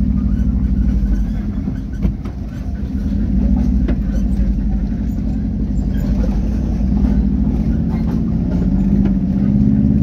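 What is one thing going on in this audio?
Tyres rumble over a rough gravel road.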